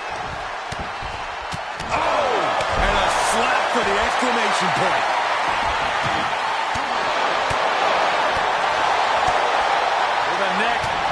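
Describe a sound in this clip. A large crowd cheers and roars loudly, growing louder after a moment.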